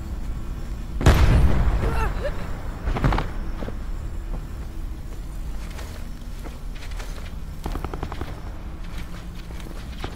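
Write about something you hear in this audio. Footsteps crunch on dry dirt at a steady pace.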